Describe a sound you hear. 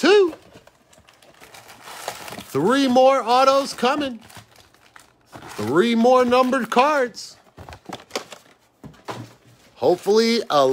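Foil card packs rustle and crinkle as they are handled.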